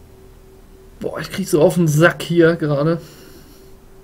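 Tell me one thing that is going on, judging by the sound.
A man speaks briefly and with animation into a microphone.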